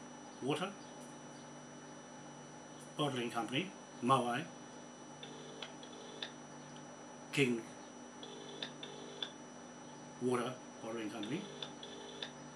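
A man speaks calmly in short phrases close by.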